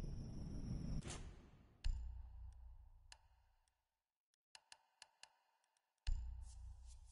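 Game menu sounds click and whoosh as options change.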